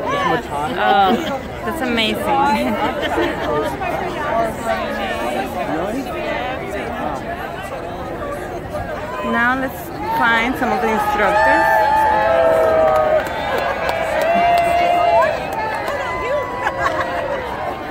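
A large outdoor crowd of adults chatters and laughs all around.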